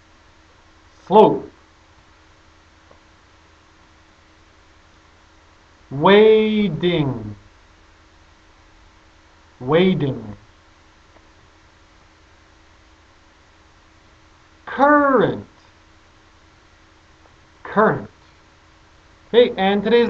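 A man speaks single words clearly and slowly, close to a microphone, with pauses between them.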